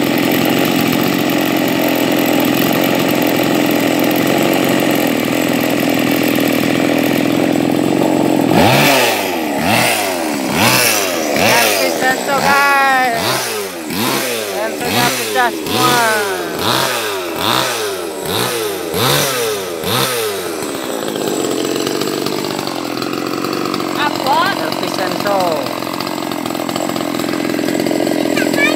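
A chainsaw engine runs loudly close by.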